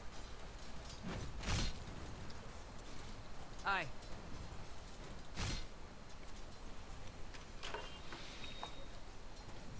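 Fantasy game spell effects whoosh and clash.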